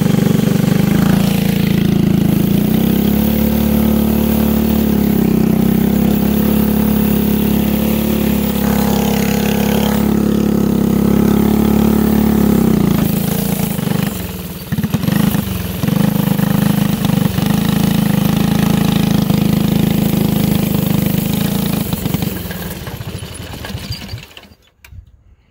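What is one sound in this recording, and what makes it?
A small single-cylinder go-kart engine drones at high revs.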